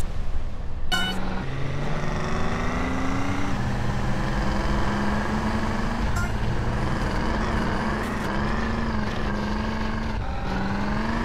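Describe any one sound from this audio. A car engine revs and roars as the car races over dirt.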